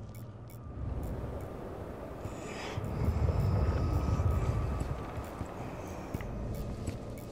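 Footsteps rustle through tall dry grass.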